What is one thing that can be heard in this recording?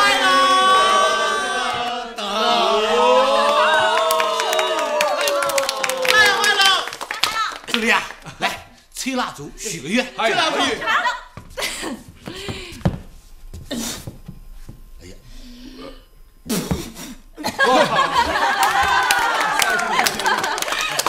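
A group of people clap their hands in rhythm.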